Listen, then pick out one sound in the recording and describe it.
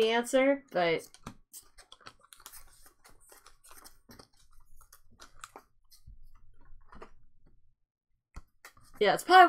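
Playing cards rustle and slide against each other in hands.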